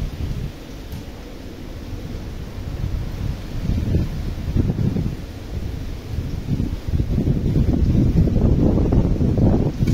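Wind gusts outdoors, rumbling and rising in strength.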